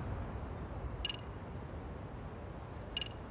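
Short electronic beeps chime.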